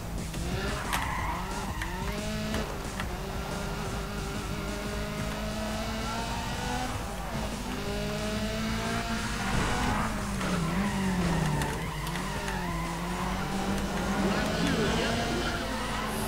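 A car engine revs high and shifts through gears.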